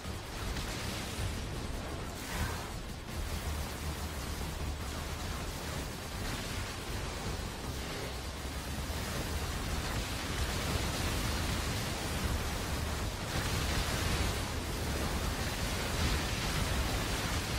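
Explosions burst in a video game.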